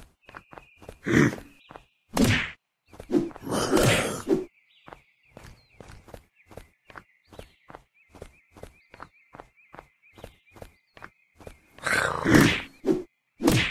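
A machete slashes and strikes with loud thuds.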